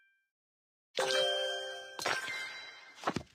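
A bright chime rings.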